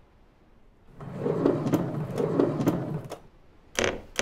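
A wooden drawer slides open with a scraping rumble.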